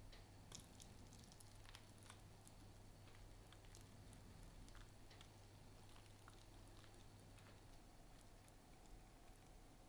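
Syrup trickles onto a pastry.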